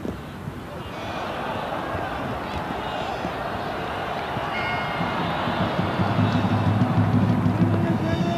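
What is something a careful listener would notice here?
A stadium crowd roars with rising excitement.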